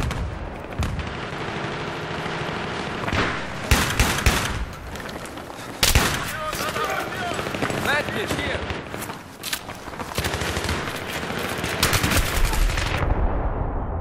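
Gunfire cracks out in sharp bursts, ringing in an echoing space.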